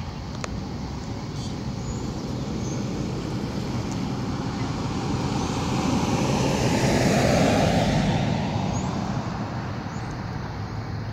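A car drives past on a nearby road, growing louder and then fading away.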